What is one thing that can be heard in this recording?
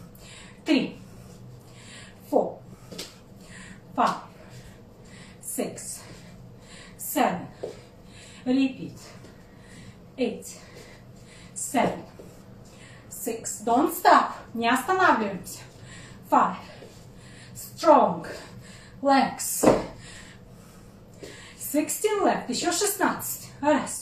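A young woman speaks nearby in short, rhythmic phrases.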